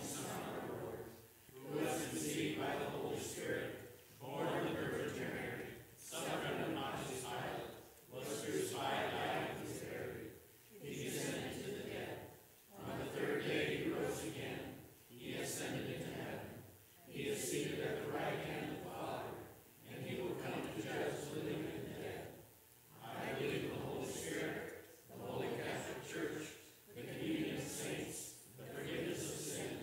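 A piano plays along.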